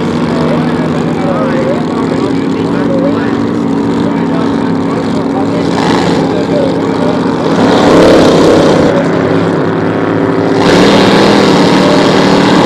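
A racing boat's engine roars steadily across the water, growing louder near the end.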